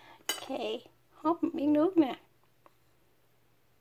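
A spoon clinks lightly against a bowl.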